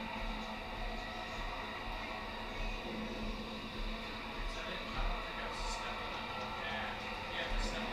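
A man talks casually through a microphone.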